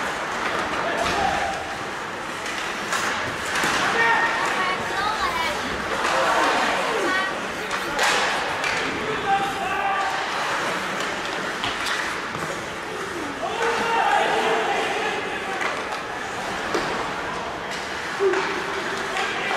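Young men shout to each other across the ice.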